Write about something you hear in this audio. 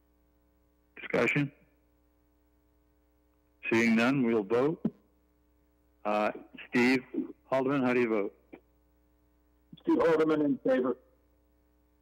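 A man speaks calmly in bursts over an online call.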